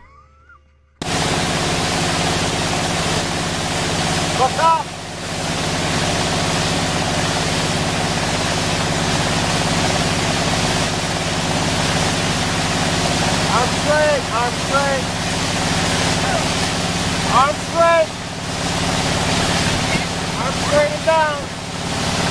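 Water rushes and splashes loudly beside a speeding boat.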